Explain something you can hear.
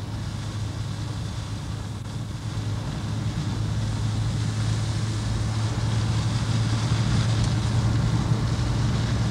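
Wind and road noise rush past, growing louder.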